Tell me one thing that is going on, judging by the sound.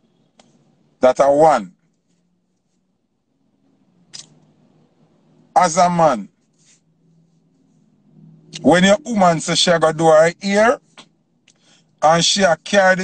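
A young man speaks with animation in short bursts, close to a phone microphone.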